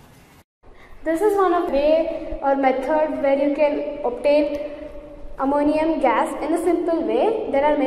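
A young girl talks calmly and close up.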